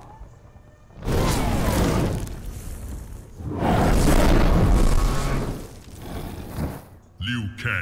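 Fire roars and bursts in a loud blaze.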